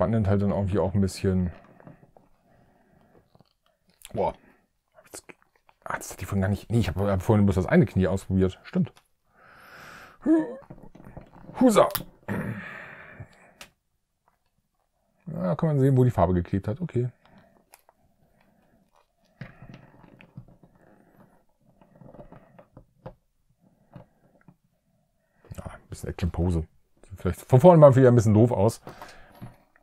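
A man talks calmly and close by, in bursts with pauses.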